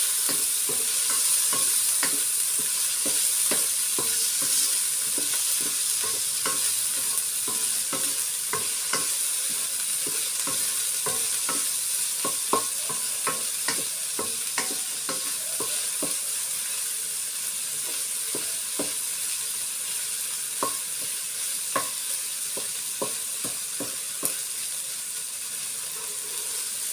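A wooden spatula scrapes and knocks against a metal pan.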